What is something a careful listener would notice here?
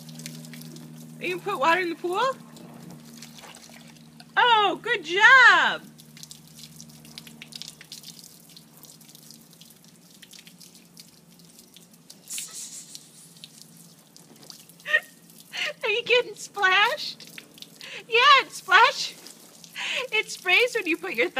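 Water trickles from a hose and splashes onto the ground.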